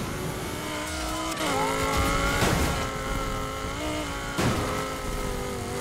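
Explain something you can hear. A sports car engine roars at high revs.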